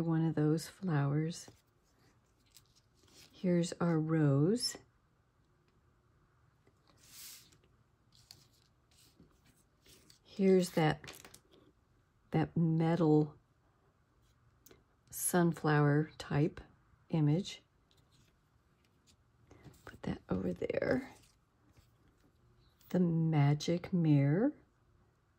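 Paper cutouts rustle and tap softly as hands handle them.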